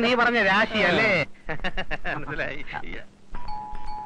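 Men talk with animation close by.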